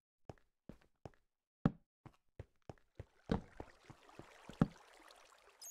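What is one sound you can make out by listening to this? Footsteps tap on stone in a quick rhythm.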